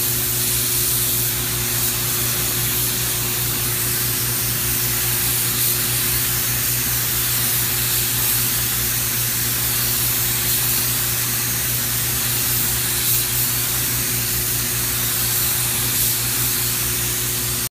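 A spray gun hisses steadily as it sprays paint.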